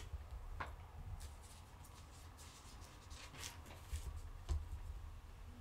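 Small objects click and rustle as they are handled close by.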